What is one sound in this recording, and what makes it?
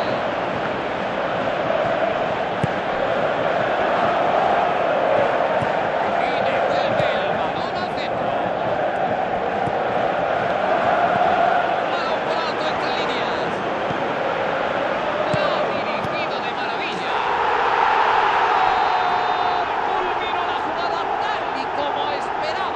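A large stadium crowd roars steadily throughout.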